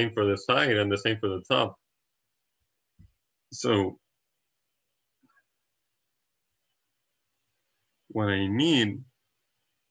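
A young man speaks calmly and closely into a microphone, with pauses.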